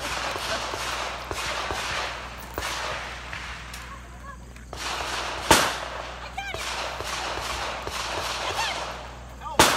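Several people's footsteps crunch on gravel.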